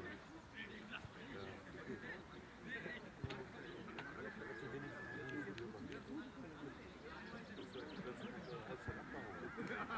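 Several young men chatter and call out outdoors in a light wind.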